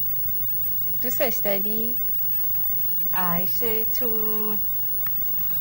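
A young woman speaks softly and warmly nearby.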